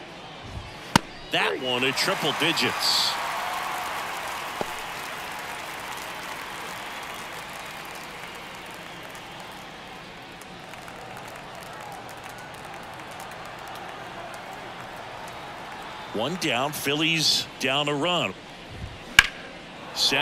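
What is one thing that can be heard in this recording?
A baseball smacks into a catcher's mitt.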